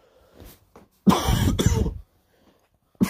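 A man coughs into his hand.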